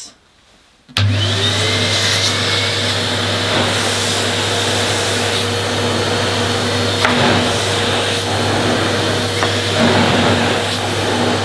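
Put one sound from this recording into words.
A vacuum cleaner switches on and runs with a steady loud hum.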